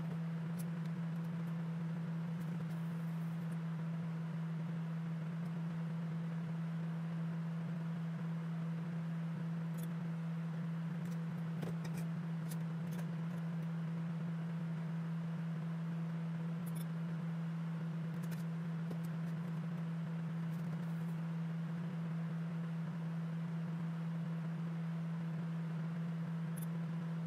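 A ventilation fan hums steadily.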